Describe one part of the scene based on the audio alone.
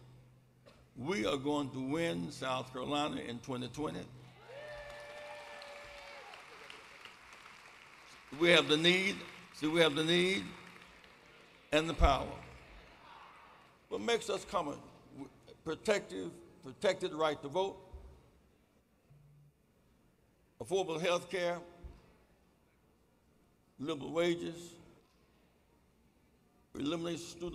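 An elderly man speaks slowly and forcefully through a microphone in a large echoing hall, with long pauses between phrases.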